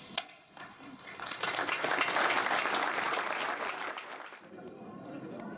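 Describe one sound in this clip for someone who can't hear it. People applaud.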